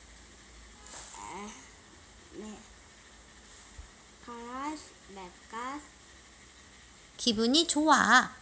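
A young girl speaks close by in short, lively phrases.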